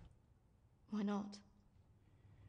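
A woman speaks briefly in a low voice.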